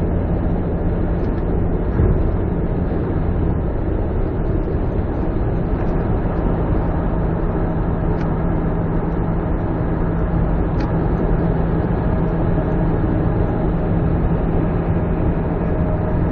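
A car drives steadily along a highway, its engine and tyres rumbling from inside the cabin.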